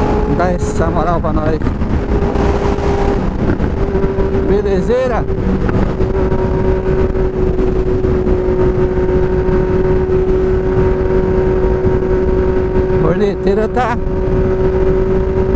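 Wind rushes loudly past a moving rider.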